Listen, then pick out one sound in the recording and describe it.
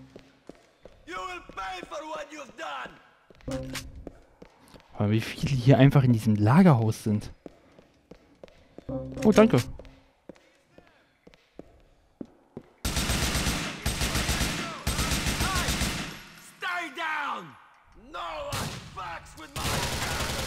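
A man speaks angrily nearby.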